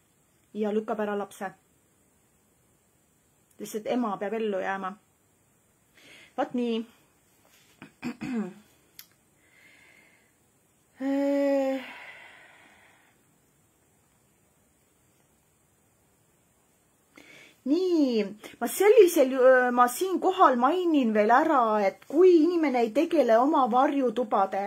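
A woman talks calmly and close by, with pauses.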